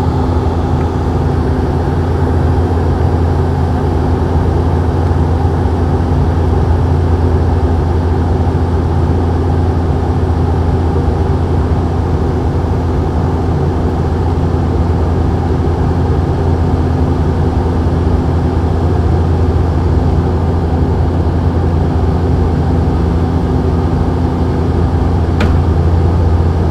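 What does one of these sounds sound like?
An aircraft's engines drone steadily in the cabin.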